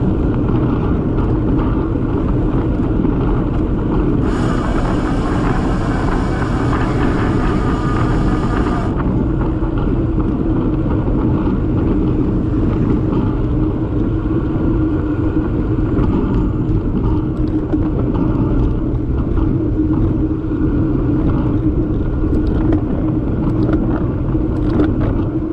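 Bicycle tyres hum on smooth tarmac.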